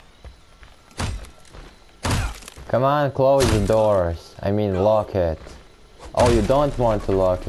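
A wooden door splinters and cracks under heavy blows.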